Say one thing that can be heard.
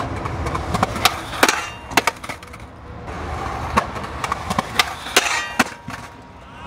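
A skateboard clacks hard as it lands and hits the ground.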